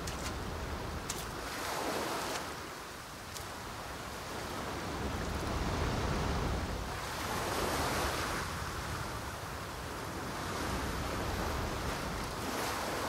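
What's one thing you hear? Small waves wash onto the shore in slow, swelling surges.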